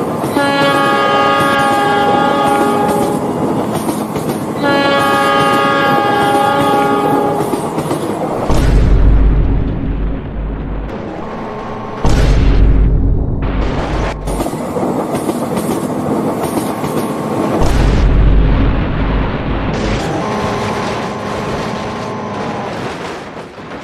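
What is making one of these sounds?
A train horn blows loud, long blasts.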